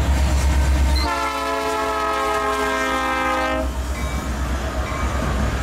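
Train wheels clatter over the rails as the train passes close by.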